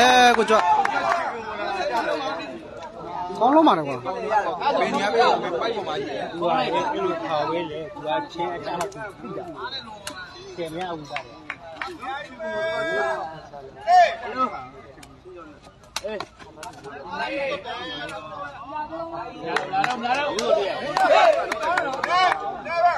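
A crowd of onlookers shouts and cheers outdoors.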